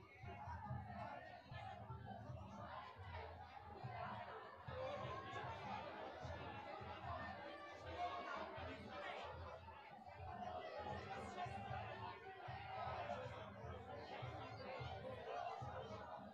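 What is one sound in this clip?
A large crowd chatters and cheers steadily in an echoing hall.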